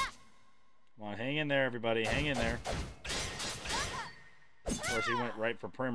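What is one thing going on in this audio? A man talks with animation into a nearby microphone.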